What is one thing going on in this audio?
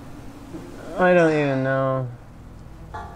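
A man cries out in a strained, drawn-out voice.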